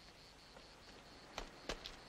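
Footsteps crunch on dry, stony ground.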